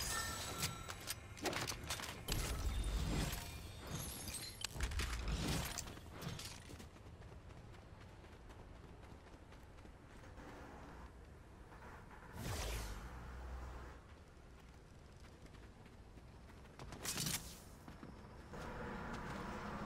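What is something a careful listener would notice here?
Quick footsteps patter on hard ground.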